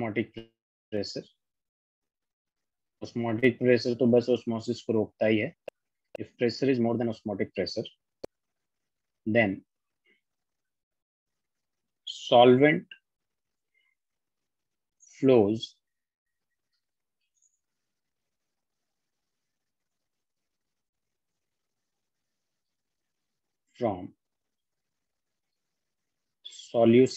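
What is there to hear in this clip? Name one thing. A man speaks calmly into a microphone, in short bursts with long pauses.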